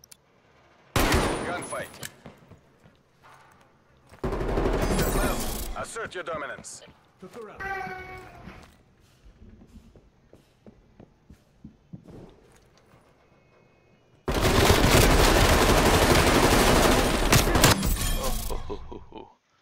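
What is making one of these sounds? Gunshots ring out in loud, rapid bursts.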